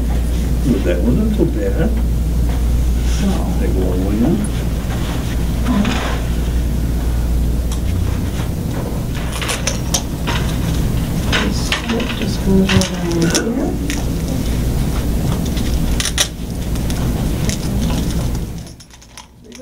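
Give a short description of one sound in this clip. Electric clippers buzz steadily.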